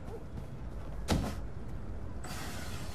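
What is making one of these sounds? A window slides open with a knock.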